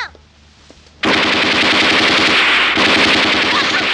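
A machine gun fires rapidly.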